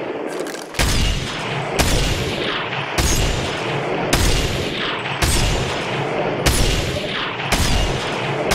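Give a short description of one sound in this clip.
Rifle shots fire one after another at a steady pace, each followed by a rolling echo.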